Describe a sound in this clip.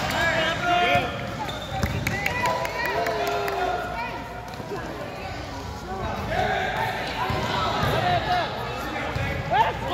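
Young players shout and call out across an echoing gym.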